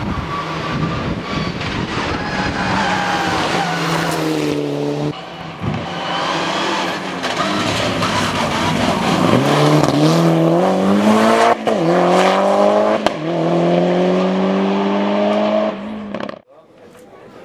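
A rally car engine roars and revs hard, its pitch rising and falling as it shifts gears and races by.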